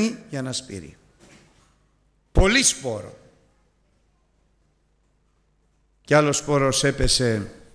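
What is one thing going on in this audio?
An elderly man speaks calmly into a microphone, with pauses between phrases.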